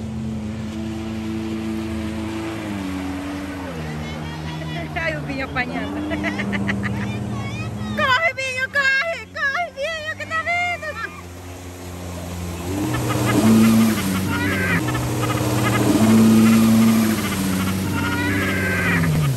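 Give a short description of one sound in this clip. A personal watercraft engine drones and revs nearby.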